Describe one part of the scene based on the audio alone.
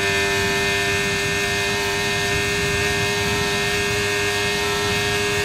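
A racing car engine screams at high revs, steady and whining.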